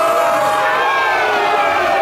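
A young man shouts with excitement.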